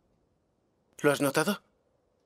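A young man speaks briefly in a low voice.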